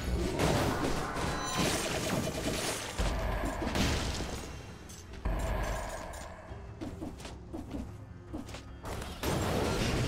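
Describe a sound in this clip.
Sword slashes and blows crackle in quick, punchy bursts.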